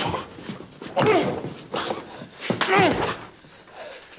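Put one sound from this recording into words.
A man cries out in distress, close by.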